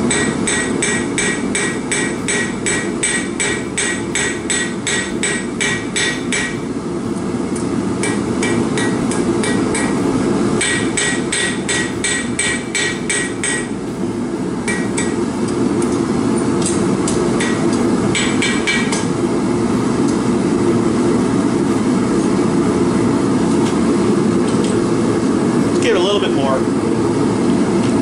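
A forge burner roars steadily.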